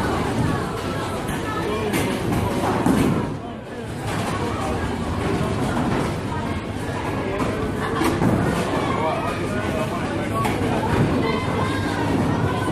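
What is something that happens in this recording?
Young people chat and laugh nearby.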